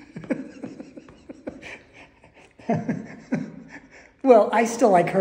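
An elderly woman laughs close by.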